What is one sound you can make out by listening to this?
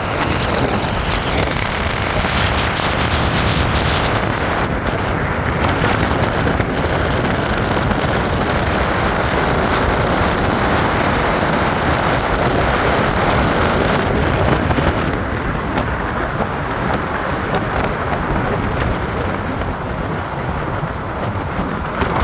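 A car drives at speed, its tyres roaring on a paved road.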